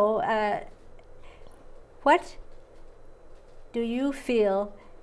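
A woman speaks with animation in short bursts, close by.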